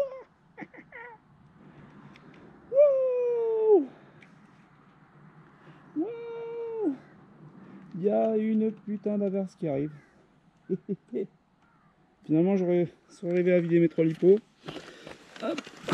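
A man talks close by.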